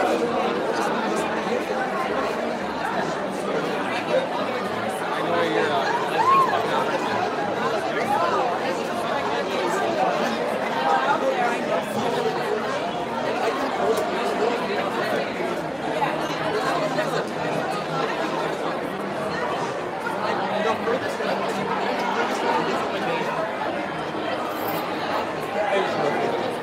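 A large crowd chatters loudly in an echoing hall.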